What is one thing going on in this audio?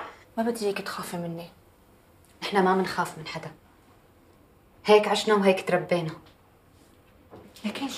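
A second woman replies in a firm voice.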